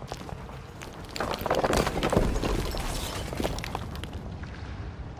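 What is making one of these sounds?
Heavy rubble scrapes and tumbles as it is pushed aside.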